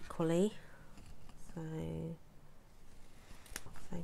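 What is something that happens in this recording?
Small scissors snip through card.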